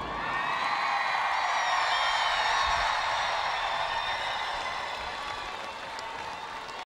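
A large crowd cheers and screams loudly in a big hall, slowly fading a little.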